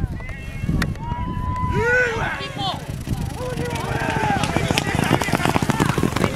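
Horses gallop past, hooves pounding on dirt.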